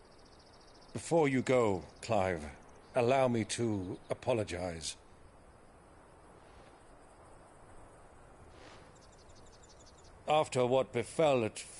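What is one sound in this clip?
A middle-aged man speaks calmly and gently, close by.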